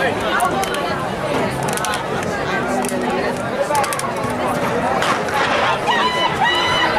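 A crowd chatters nearby outdoors.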